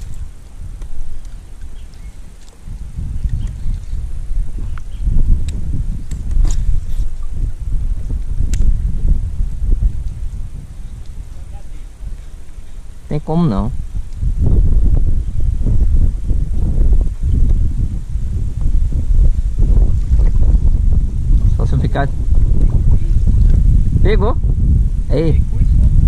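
Wind blows outdoors, rumbling over the microphone.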